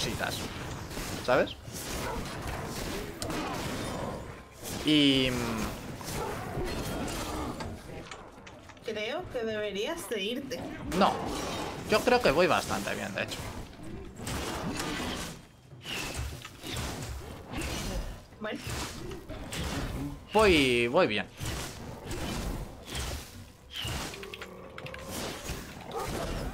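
Swords clash in a fight.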